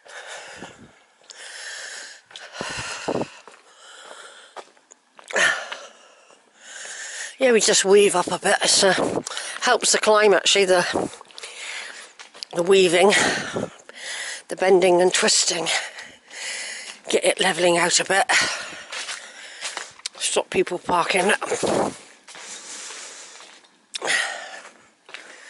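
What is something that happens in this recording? Footsteps crunch slowly on a rough, wet track.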